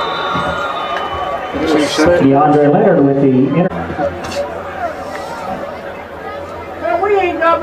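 A crowd cheers in a large outdoor stadium.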